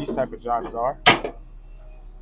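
A metal locker door bangs shut.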